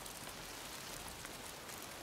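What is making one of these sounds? Footsteps rustle through dry grass.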